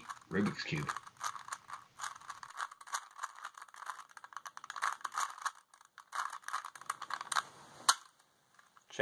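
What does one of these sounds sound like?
A puzzle cube clicks and rattles as it is twisted quickly.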